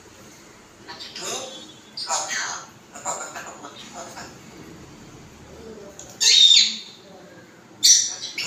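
A parrot squawks and whistles loudly close by.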